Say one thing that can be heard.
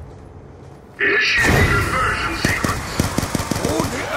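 A gun fires rapid shots close by.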